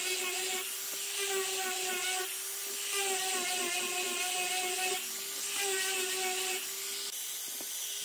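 An electric grinder whines steadily at high speed.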